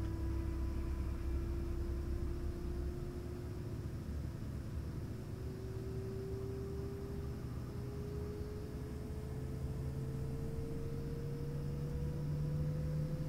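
Helicopter rotors thrum with a deep, constant rumble close by.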